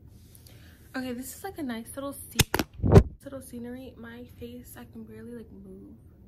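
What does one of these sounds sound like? A young woman talks close to the microphone with animation.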